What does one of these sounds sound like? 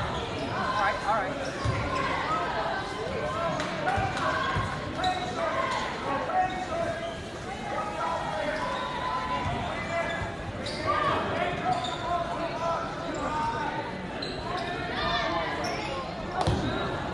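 A crowd of spectators cheers and calls out in a large echoing gym.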